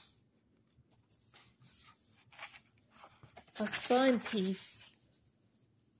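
A sheet of paper rustles as it is laid down.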